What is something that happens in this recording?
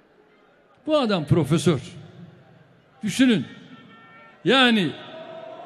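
An older man speaks forcefully into a microphone in short, emphatic phrases with pauses between them.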